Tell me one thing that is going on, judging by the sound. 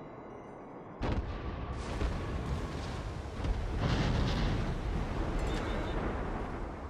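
Naval guns boom in heavy salvos.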